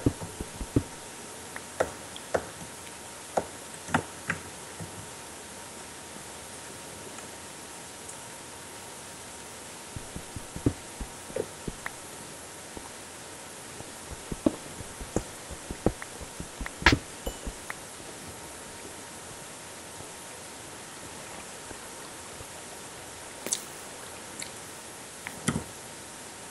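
A pickaxe chips at stone in short, sharp knocks.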